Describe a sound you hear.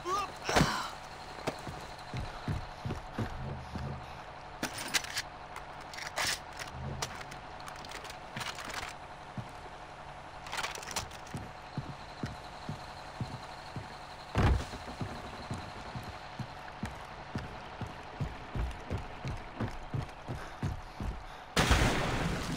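Footsteps thump steadily on wooden planks.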